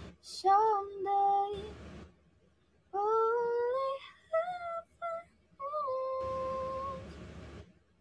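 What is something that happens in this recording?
A young girl sings short phrases close to a microphone.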